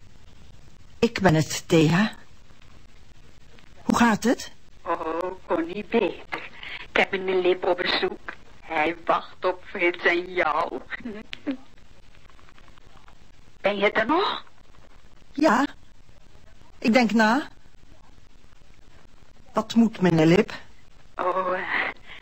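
A man's voice speaks in short bursts through an old radio's loudspeaker.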